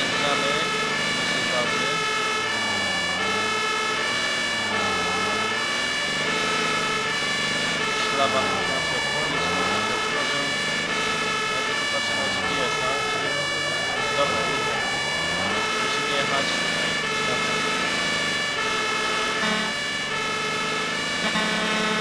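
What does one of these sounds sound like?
A siren wails up and down over and over.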